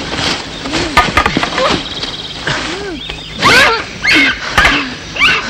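A man shouts and groans loudly, close by.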